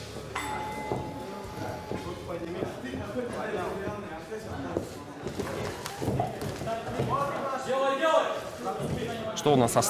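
Gloved punches thud against bodies.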